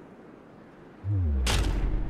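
A heavy hammer slams down with a deep boom.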